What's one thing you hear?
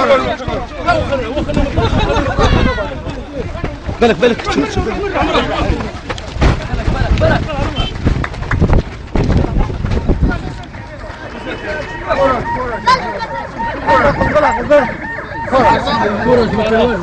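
A crowd of men shout and talk excitedly close by.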